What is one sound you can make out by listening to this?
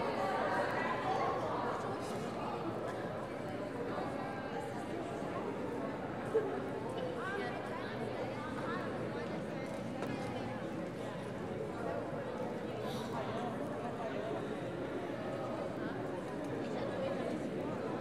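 A group of young girls chatter and call out in a large echoing hall.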